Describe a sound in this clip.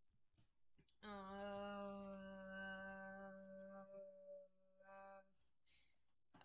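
A young man sings a long drawn-out note.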